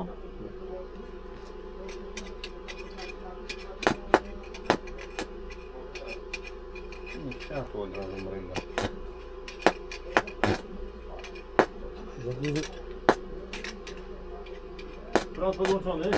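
Small knocks and scrapes sound as a worker digs through rubble.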